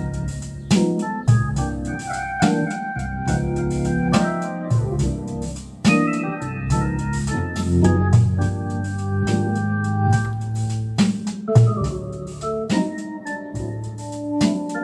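An electric organ plays a lively tune.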